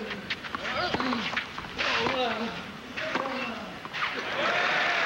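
Tennis balls are struck with sharp pops.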